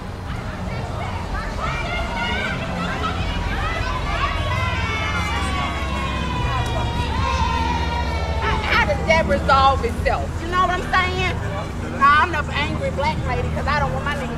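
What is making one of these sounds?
Men and women chat as they walk past nearby.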